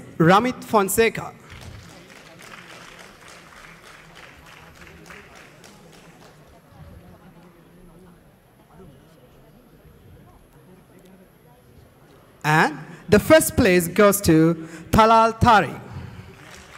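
A man announces loudly through a microphone in a large hall.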